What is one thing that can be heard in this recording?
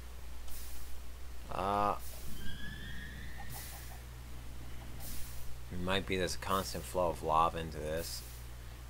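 Lava bubbles and pops with a soft hiss.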